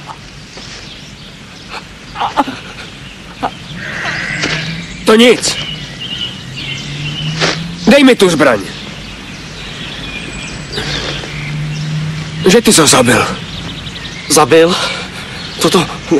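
A young man talks in a lively way outdoors.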